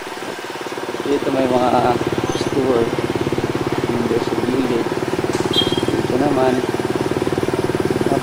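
A motorcycle engine hums as it rides past.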